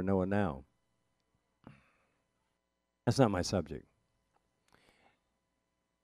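An elderly man speaks calmly and expressively into a close microphone, in short phrases.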